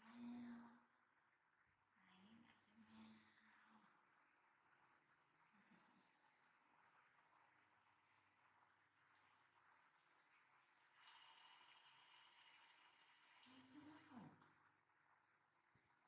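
A hand softly rubs a baby monkey's fur.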